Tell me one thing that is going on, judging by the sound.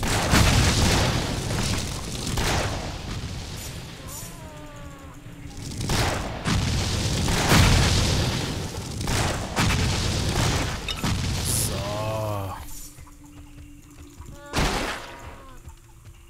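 Explosions and clashing blows burst from a game in quick succession.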